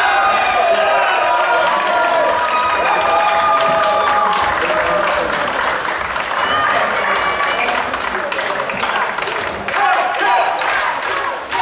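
Young men shout and cheer with excitement in a large echoing hall.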